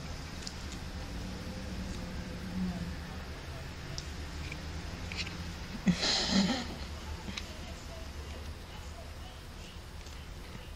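A kitten's paws softly rustle and scratch against a fuzzy blanket.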